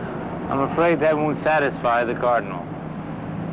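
A man speaks earnestly in a low, close voice.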